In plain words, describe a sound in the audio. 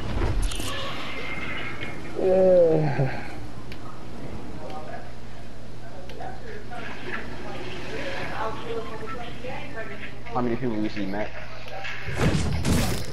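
Wind rushes steadily past during a glide.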